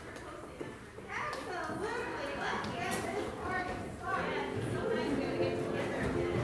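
A crowd of adult men and women chatters in a large echoing hall.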